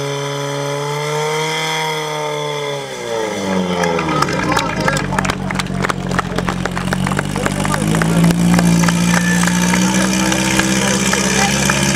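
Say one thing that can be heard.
A pump engine drones loudly, its pitch dipping and rising.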